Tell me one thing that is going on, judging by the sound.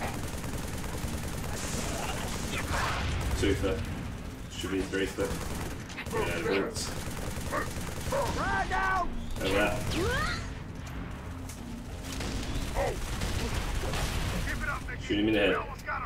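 Gunfire rattles in bursts with booming blasts.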